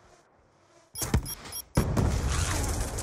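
A missile explodes with a heavy blast on impact.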